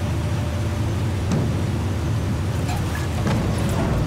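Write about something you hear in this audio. Gunshots crack a few times.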